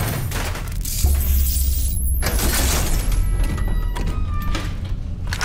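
A heavy metal valve wheel grinds and creaks as it turns.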